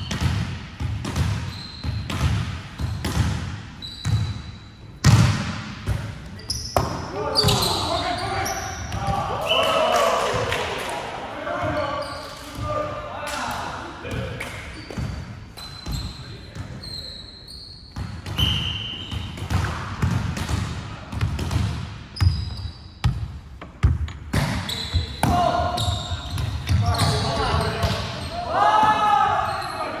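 A volleyball is struck with sharp slaps that echo around a large hall.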